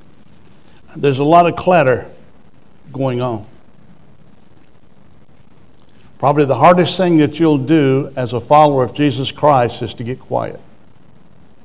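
An elderly man speaks with animation through a microphone, pausing between phrases.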